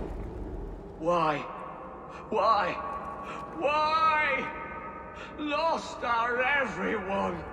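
A man speaks in anguish, his voice breaking.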